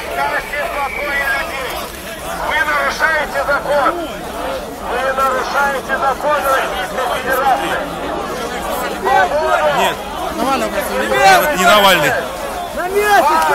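A crowd of men and women talk and shout over one another close by.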